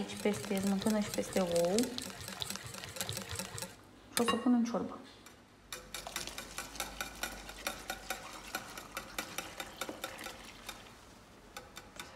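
A wire whisk clicks and taps quickly against a bowl.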